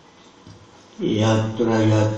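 An elderly man chants loudly through a microphone.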